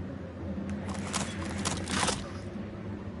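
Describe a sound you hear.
An axe is pulled free from wood with a thud.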